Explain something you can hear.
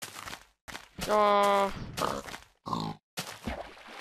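A pig grunts.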